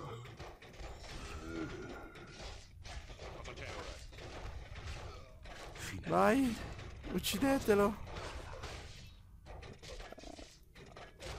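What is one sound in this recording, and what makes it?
Weapons clash and clang in a busy battle.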